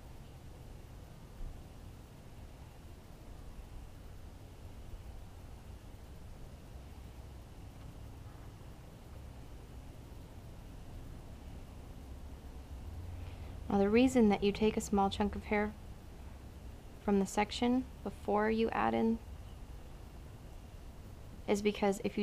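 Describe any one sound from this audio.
Hands braid long hair, the strands rustling.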